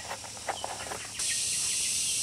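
A digging tool scrapes into dry soil.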